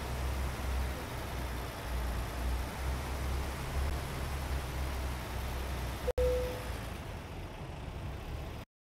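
A truck engine idles with a deep, steady rumble.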